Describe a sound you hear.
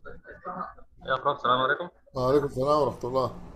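A man speaks clearly and close to a microphone over an online call.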